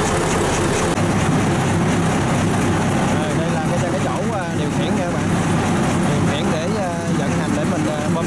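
A chain clatters as it drives a spinning pulley.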